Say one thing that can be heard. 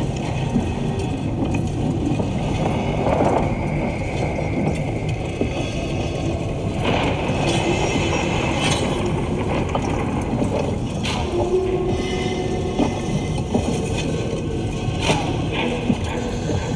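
Water churns and rumbles steadily close by, heard underwater.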